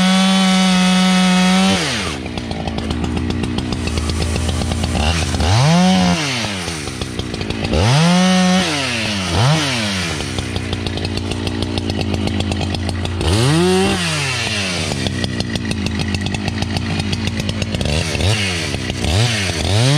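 A chainsaw roars loudly close by, revving up and down as it cuts into a tree trunk.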